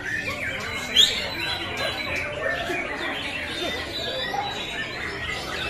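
A caged songbird chirps and sings.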